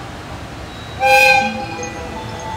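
A locomotive sounds a short, loud horn blast.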